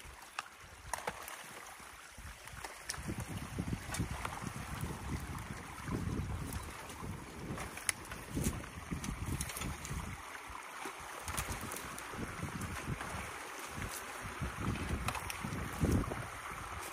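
Water trickles and splashes.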